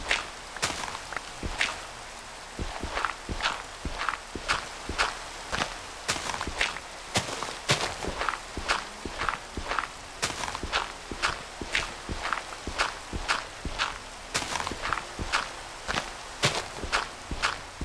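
A shovel digs into dirt with quick, repeated crunching thuds.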